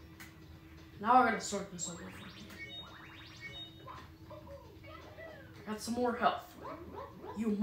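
Video game sound effects chime and bounce through a television speaker.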